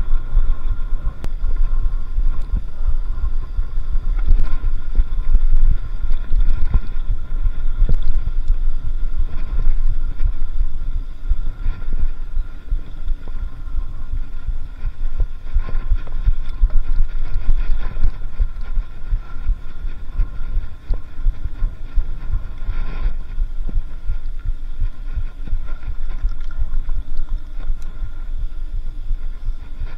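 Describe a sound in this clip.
Bicycle tyres roll and crunch over a dirt track.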